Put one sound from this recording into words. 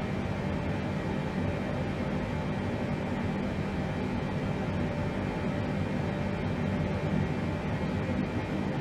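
A jet engine drones with a steady low rumble.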